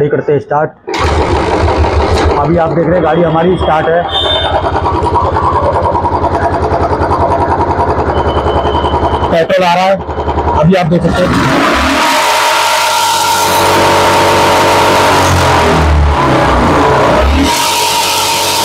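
A motorcycle engine idles with a steady, rapid putter.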